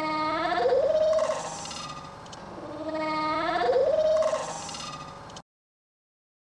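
A seal pup cries out twice in long, wavering bleats close by.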